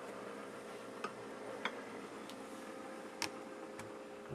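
Glass bottles clink together.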